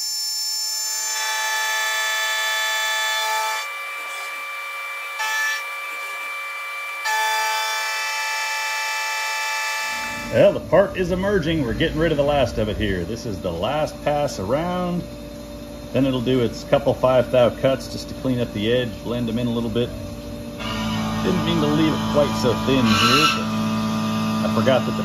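A milling machine whines steadily as it cuts metal.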